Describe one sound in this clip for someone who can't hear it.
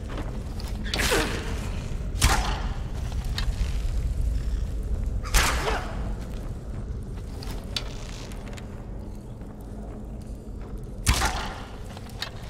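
A bowstring snaps as arrows are loosed, several times.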